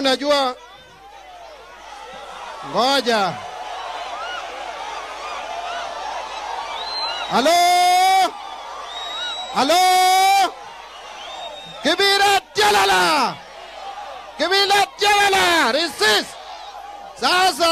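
A man shouts loudly into a microphone over a loudspeaker, in short bursts.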